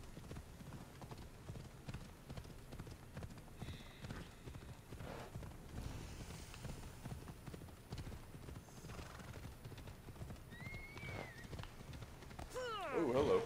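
A horse's hooves thud steadily over rocky ground.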